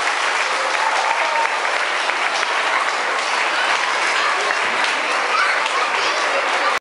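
Young children chatter and talk over each other in an echoing hall.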